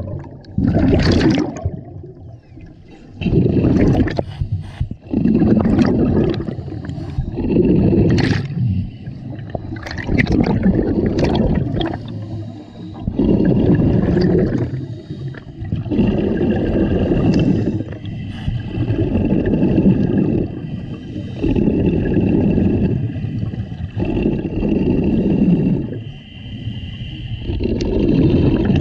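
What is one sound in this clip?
Air bubbles gurgle out from a diver's regulator in bursts.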